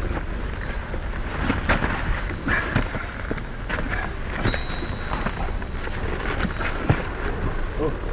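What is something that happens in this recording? Boots scuffle on dirt ground.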